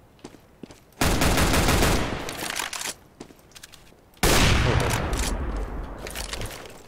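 Gunshots ring out loudly with echoing tails.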